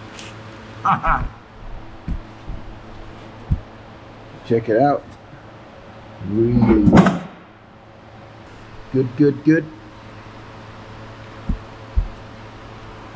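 Metal tools clink and knock now and then.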